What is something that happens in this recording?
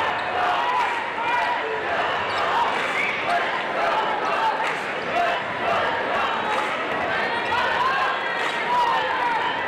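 A large crowd murmurs and cheers in a big echoing arena.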